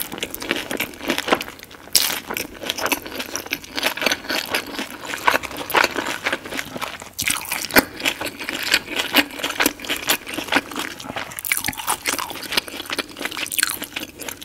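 A woman chews wet, crunchy food close to a microphone.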